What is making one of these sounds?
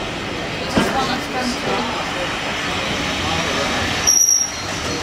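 A railway carriage rolls past, its wheels rumbling and clattering on the rails.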